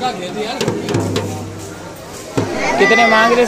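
A man taps a small hand drum.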